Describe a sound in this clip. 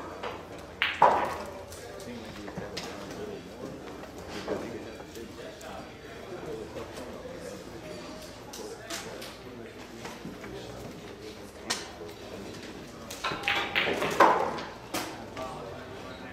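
Pool balls knock together and roll on the table.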